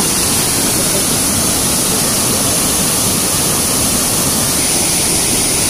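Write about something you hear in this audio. Water rushes and roars through a lock gate.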